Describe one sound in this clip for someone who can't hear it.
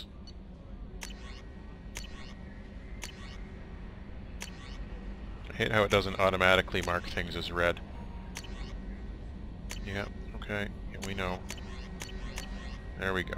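Short electronic menu clicks sound each time a button is pressed.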